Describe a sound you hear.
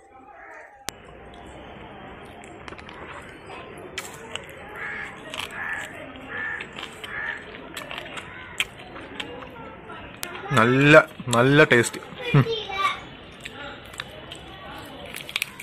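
A man chews food noisily, close by.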